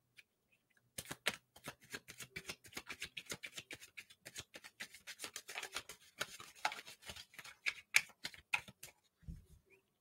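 Playing cards riffle and flick softly as they are shuffled.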